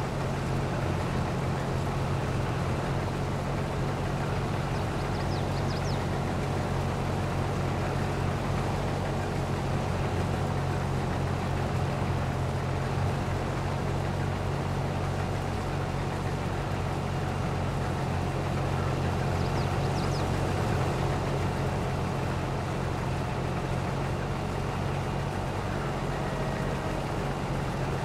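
Grain pours from an unloading auger into a trailer with a steady rushing.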